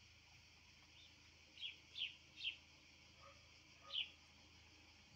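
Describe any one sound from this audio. Sparrows chirp loudly nearby a few times.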